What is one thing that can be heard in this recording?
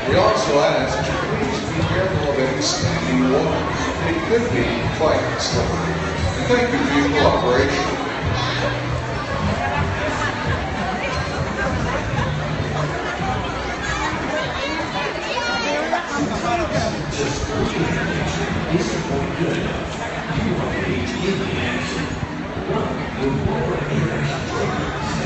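Water splashes and sloshes in a large pool.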